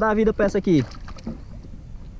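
Water splashes as a fish thrashes at the surface.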